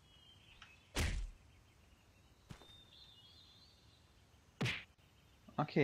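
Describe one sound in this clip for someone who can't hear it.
Swords clash with sharp metallic strikes.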